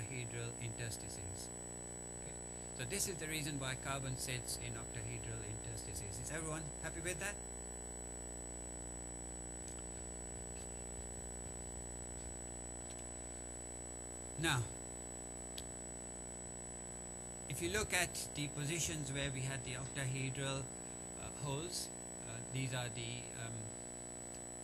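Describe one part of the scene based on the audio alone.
A man lectures calmly through a microphone, with long pauses.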